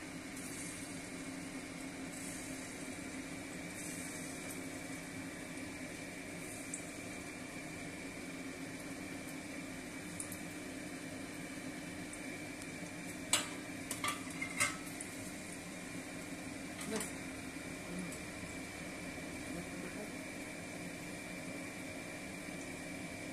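Oil sizzles and bubbles steadily in a hot pan.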